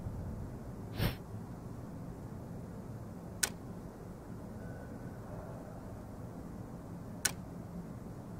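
Soft game interface clicks sound as menus open and close.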